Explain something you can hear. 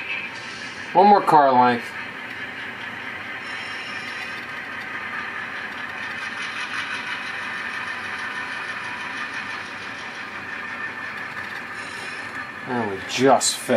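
An N-scale model diesel locomotive sounds its horn.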